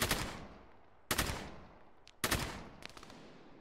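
A rifle fires single loud shots that echo and slowly fade.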